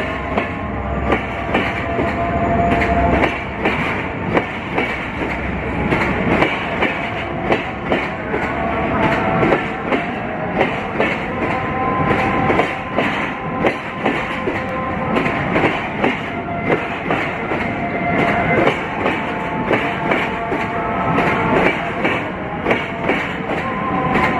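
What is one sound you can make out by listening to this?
Train wheels clack over rail joints again and again.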